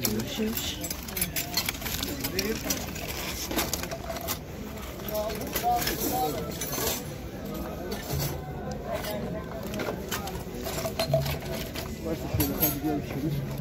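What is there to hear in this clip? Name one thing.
Metal odds and ends clink and rattle as a hand sorts through them.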